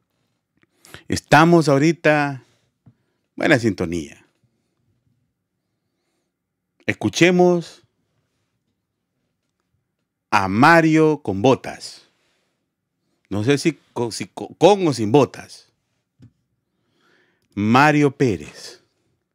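A middle-aged man speaks with animation into a close microphone, in bursts with pauses.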